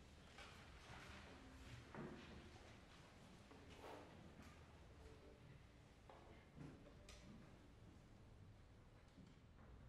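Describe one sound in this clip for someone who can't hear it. A violin plays softly and briefly.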